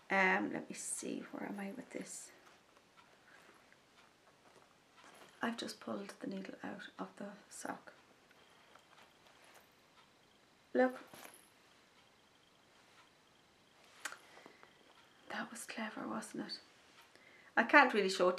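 A middle-aged woman talks calmly and close by, in short bursts with pauses.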